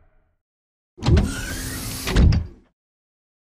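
A heavy metal door slides open with a loud rumble.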